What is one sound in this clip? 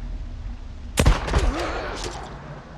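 A rifle shot cracks loudly and echoes.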